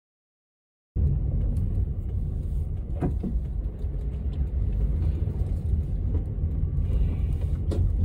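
Traffic and wind rumble outdoors from a moving car.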